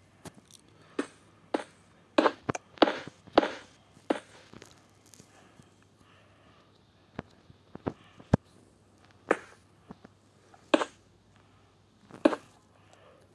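Blocks thud softly as they are placed, one after another.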